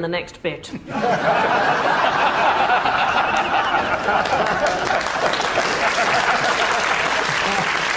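A studio audience and men laugh loudly.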